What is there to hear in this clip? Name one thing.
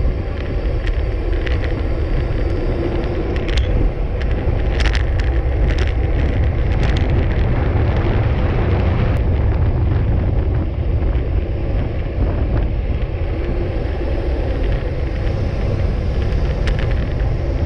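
Wind rushes loudly past a bicycle rider going downhill.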